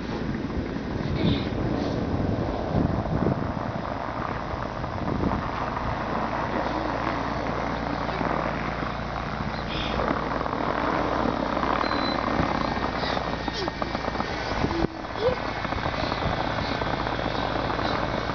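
Tyres spin and churn on packed snow.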